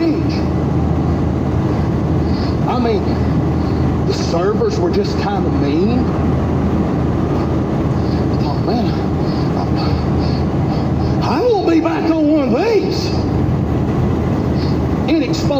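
Tyres hum steadily on a highway, heard from inside a moving car.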